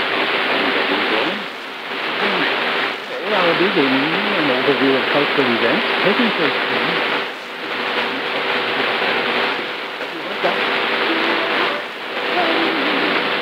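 Loud static hisses and crackles from a shortwave radio.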